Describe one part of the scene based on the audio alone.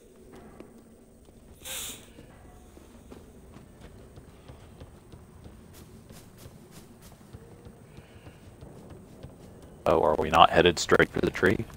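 Footsteps patter quickly on stone and wooden floors.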